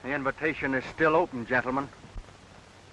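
A man speaks firmly and clearly, close by.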